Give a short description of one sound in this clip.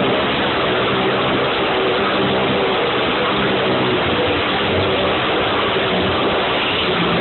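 Motorcycle engines roar loudly and steadily.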